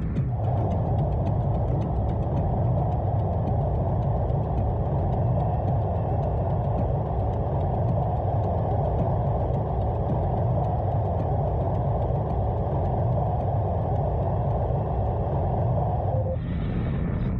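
A spaceship engine roars steadily, then cuts off.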